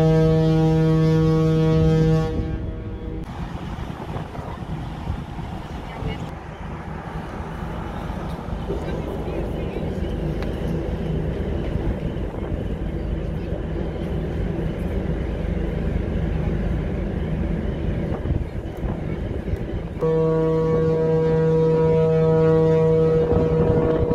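Wind blows hard across an open deck outdoors.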